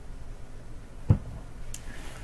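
A plastic cup is set down with a knock.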